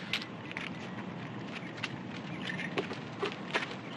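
Footsteps walk away on the ground.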